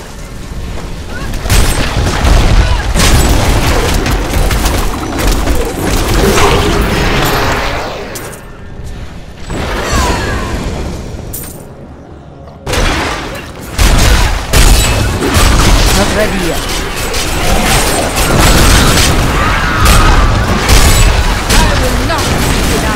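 Spells crackle and explode in a fast fight.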